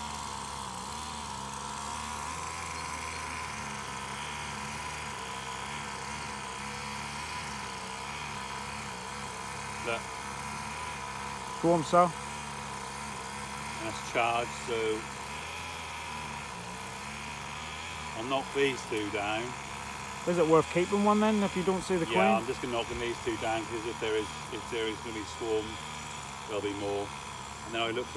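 Bees buzz steadily around a hive outdoors.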